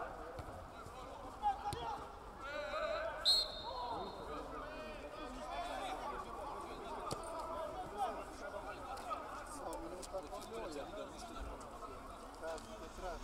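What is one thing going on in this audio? Men shout and call out across an open pitch.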